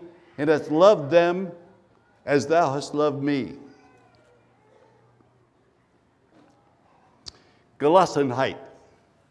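An elderly man speaks slowly and deliberately through a microphone, with pauses between phrases.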